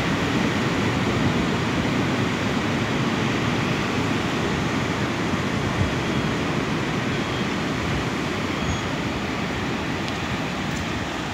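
Waves crash and roar steadily against rocks on the shore below.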